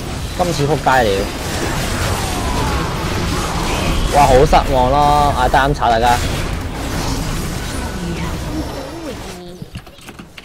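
Magic spell effects blast and crackle during a chaotic fight.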